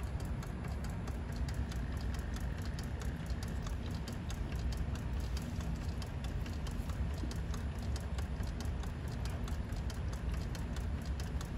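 A pump machine hums steadily close by.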